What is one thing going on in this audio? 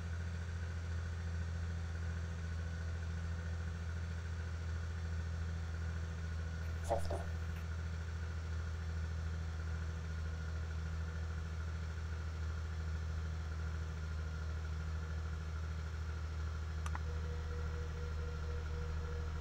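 Airplane engines drone steadily.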